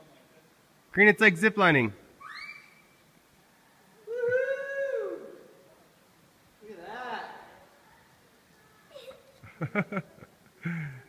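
A young child calls out and laughs excitedly nearby.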